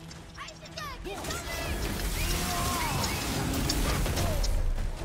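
Heavy blows land in a fight.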